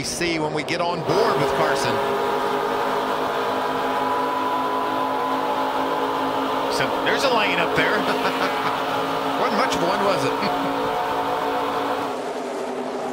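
Racing truck engines roar loudly at high speed close by.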